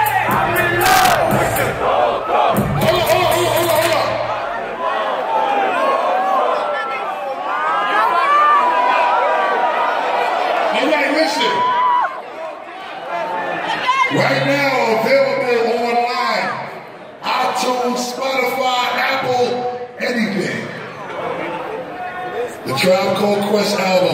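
A crowd cheers and sings along loudly nearby.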